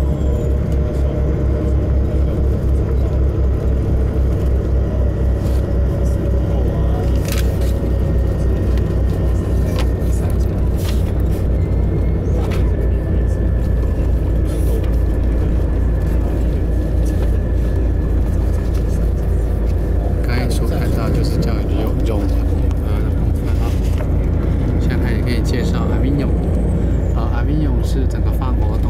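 A vehicle's engine hums low and steady from inside as it drives along.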